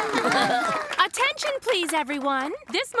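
A young woman speaks brightly and playfully.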